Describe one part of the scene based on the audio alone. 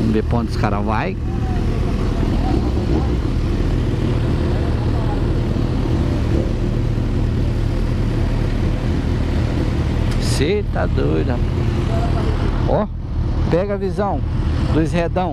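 A motorcycle engine revs up sharply in short bursts.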